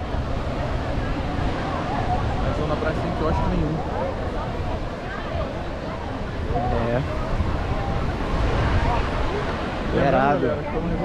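Many people chatter and call out in the distance outdoors.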